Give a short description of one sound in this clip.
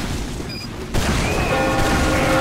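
A fireball bursts with a whoosh.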